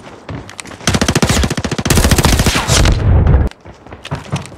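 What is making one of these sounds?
Gunfire bursts out in rapid, loud volleys.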